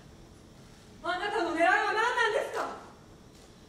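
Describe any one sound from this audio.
A young woman speaks emotionally, echoing in a large hall.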